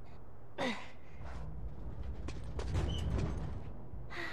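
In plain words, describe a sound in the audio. Hands and boots scrape and thud against a metal bin.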